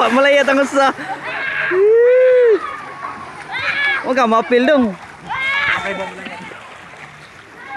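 Water splashes as swimmers kick and paddle.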